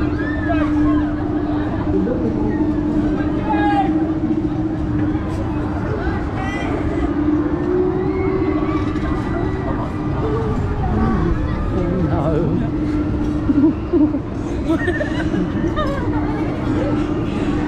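Men and women on a fairground ride shout and shriek excitedly nearby.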